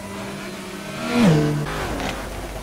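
A race car engine revs up sharply.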